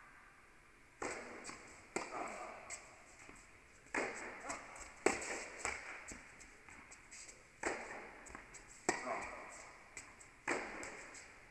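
Tennis balls are struck with sharp pops that echo around a large indoor hall.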